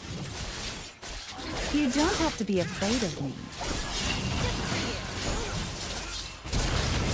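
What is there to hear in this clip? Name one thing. Game sword slashes and magic blasts crackle and whoosh during a fight.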